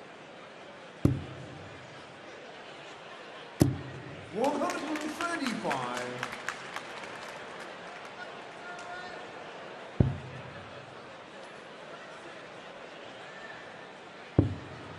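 Darts thud sharply into a board one at a time.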